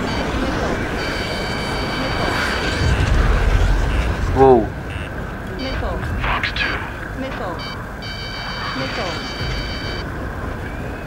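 A warning alarm beeps rapidly.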